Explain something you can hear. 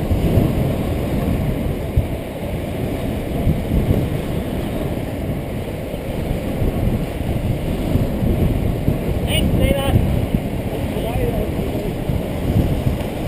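Inline skate wheels roll and rumble on asphalt.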